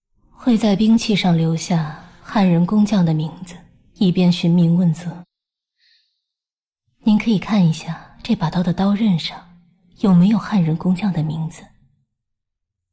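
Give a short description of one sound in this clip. A young woman speaks calmly and earnestly, close by.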